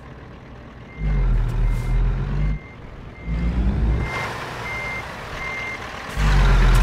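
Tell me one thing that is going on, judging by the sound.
A reversing alarm beeps steadily.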